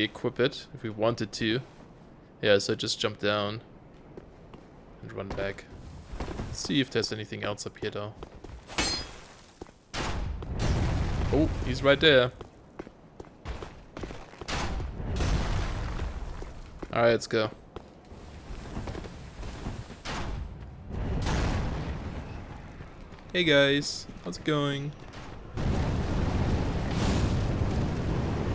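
Armoured footsteps run across stone.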